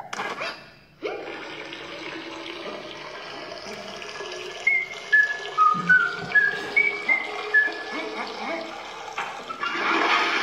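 A game plays bouncy music with bright chimes.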